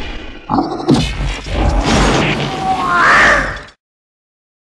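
A cartoon ghost laughs loudly with a gurgling voice.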